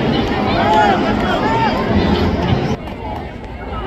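Men on the sideline shout and call out to each other.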